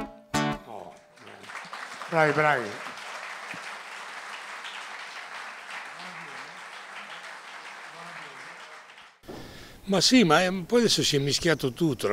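An elderly man speaks with animation into a microphone, amplified through loudspeakers.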